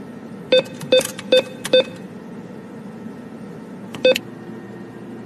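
Short electronic beeps sound as keys are pressed.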